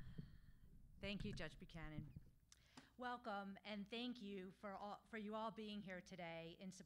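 A woman speaks calmly into a microphone in a large room.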